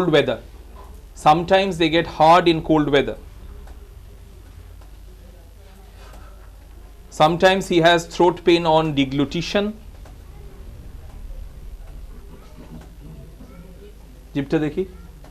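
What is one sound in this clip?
A man speaks calmly and close by, in short bursts with pauses.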